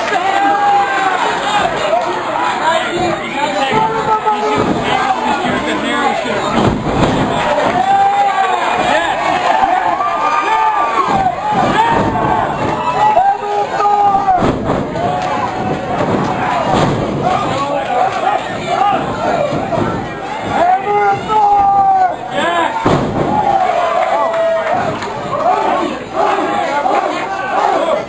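A crowd of spectators cheers and shouts throughout in an echoing hall.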